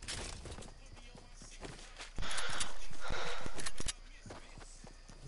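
Footsteps patter quickly across wooden boards and grass.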